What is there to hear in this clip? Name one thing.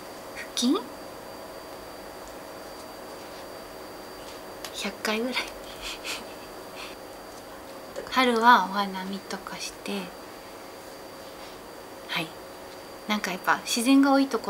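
A young woman speaks close by, cheerfully, with short laughs and pauses.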